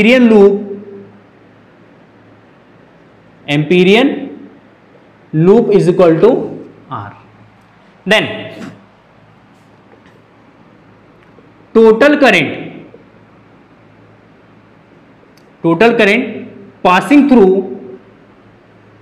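A young man speaks in short, clear bursts close by, explaining.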